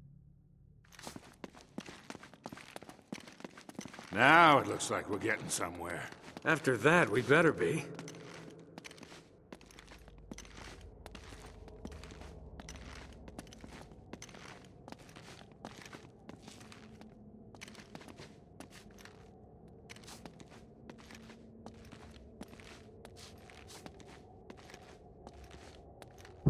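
Footsteps hurry on stone steps and paving.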